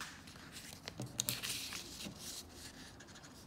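A paper sheet rustles as it is turned.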